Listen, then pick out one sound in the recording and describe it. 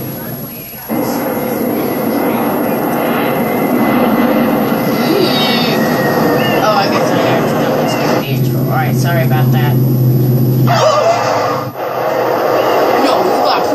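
Upbeat video game music plays from a television speaker.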